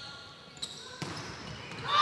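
A volleyball is struck with a thud.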